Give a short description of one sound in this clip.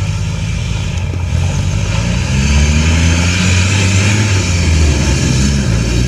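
Knobby tyres crunch over gravel.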